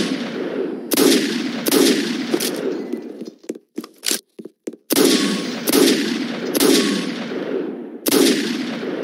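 A gun fires in loud booming shots that ring out.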